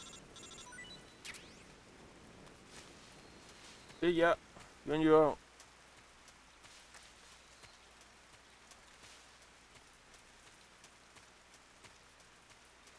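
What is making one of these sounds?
Grass rustles softly as someone crawls through it.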